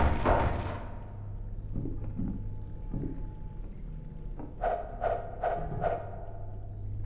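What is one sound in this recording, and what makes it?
Wooden boards crack and splinter under blows.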